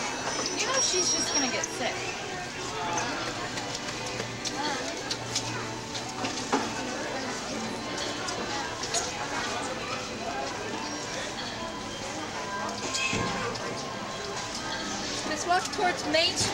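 A crowd chatters and murmurs all around outdoors.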